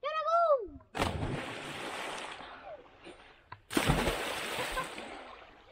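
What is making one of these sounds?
Bodies plunge into water with loud splashes.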